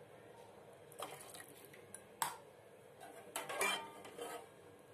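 A metal ladle clinks and scrapes against a pot.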